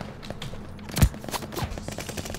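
A pistol fires sharp gunshots.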